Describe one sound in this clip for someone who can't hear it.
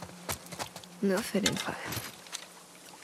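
A young woman speaks briefly and quietly.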